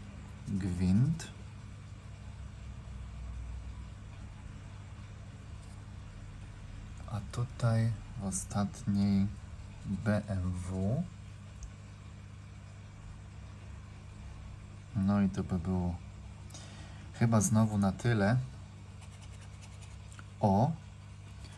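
A pen scrapes across a scratch card.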